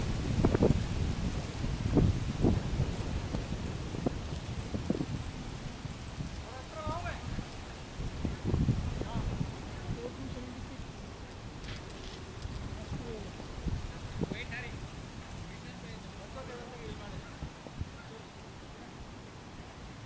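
Wind rumbles and gusts outdoors.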